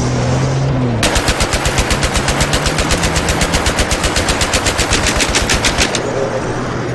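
A heavy machine gun fires in rapid, steady bursts.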